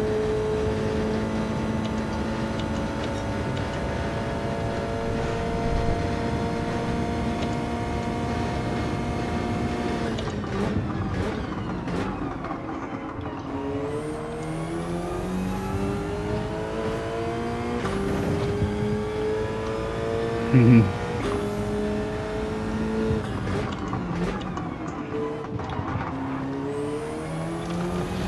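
A racing car engine roars loudly from inside the cabin, its pitch rising and falling as the car speeds up and shifts gears.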